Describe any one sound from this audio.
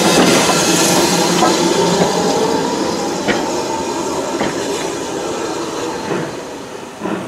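Train carriages rumble and clatter past close by.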